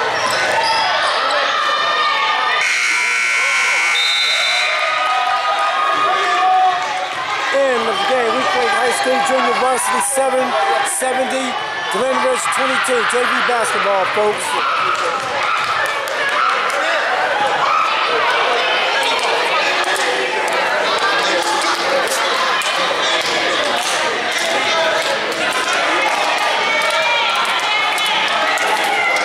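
A crowd in a large echoing gym cheers and chatters.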